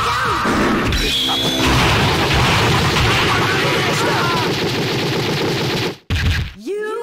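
Loud video game fight effects crackle and blast in rapid hits.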